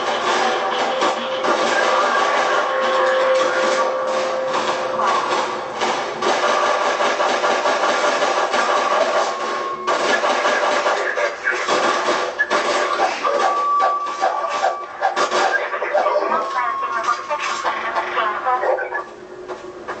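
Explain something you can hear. Pistol shots crack from a video game through a loudspeaker.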